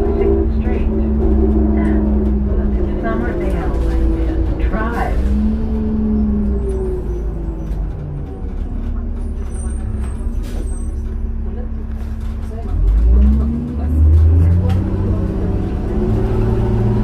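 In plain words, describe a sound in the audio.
A bus interior rattles and creaks over the road.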